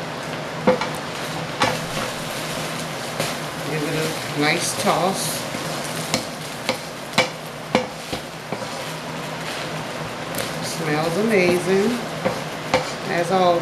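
A spatula scrapes and clacks against a metal pan while food is stirred.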